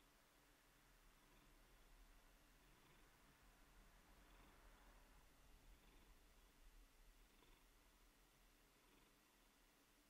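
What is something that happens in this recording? A wooden tool scrapes softly against wet clay.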